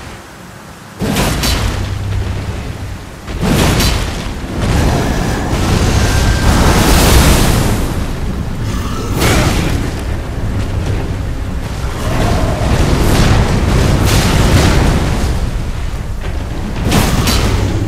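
Heavy blows and clashes of a battle ring out, with loud rumbling impacts.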